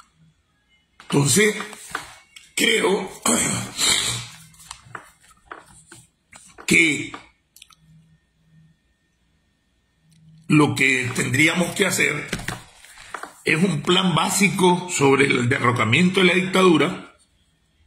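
A middle-aged man talks calmly and closely into a phone microphone, pausing now and then.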